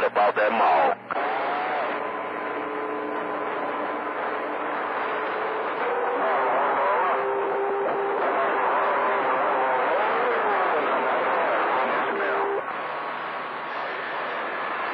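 A radio receiver hisses with crackling static.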